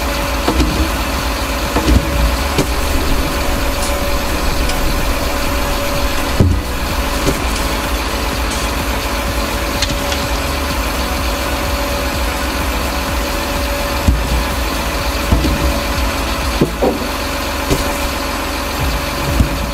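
A hydraulic crane arm whines as it moves.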